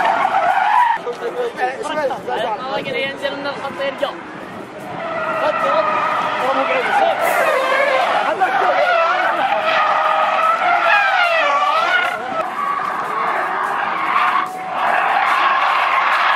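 A car engine revs hard and whines up and down.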